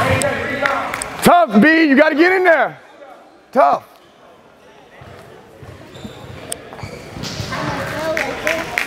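Young children chatter and call out in a large echoing hall.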